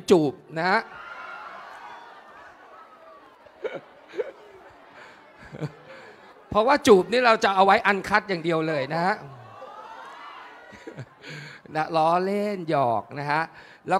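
An audience laughs in a large hall.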